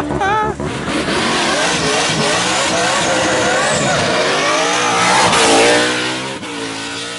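Tyres screech and squeal on tarmac.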